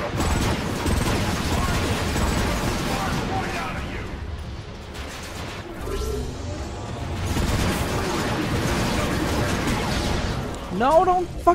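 Rapid laser gunfire blasts and crackles.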